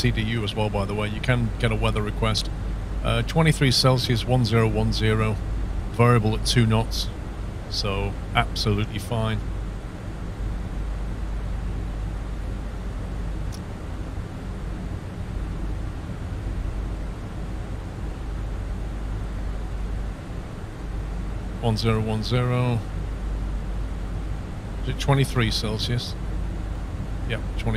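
A jet airliner's engines drone steadily in flight, heard from inside the cockpit.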